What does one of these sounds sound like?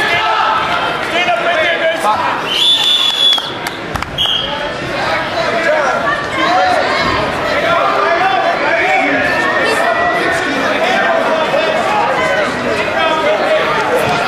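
A crowd of spectators chatters throughout in a large echoing hall.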